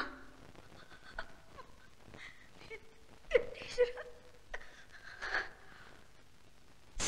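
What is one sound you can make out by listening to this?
An elderly woman sobs and cries out.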